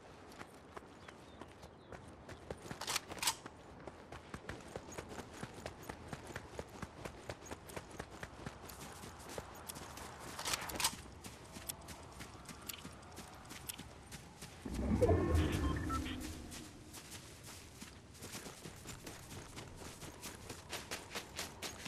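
Footsteps crunch quickly over rocky ground and grass.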